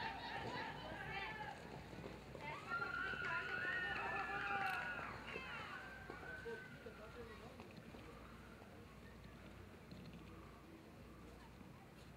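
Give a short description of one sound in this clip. Horses gallop with hooves thudding on soft dirt.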